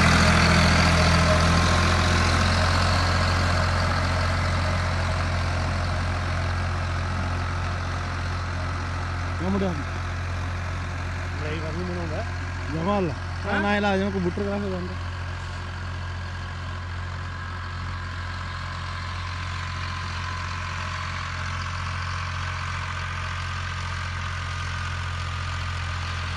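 A leveling board scrapes over loose soil.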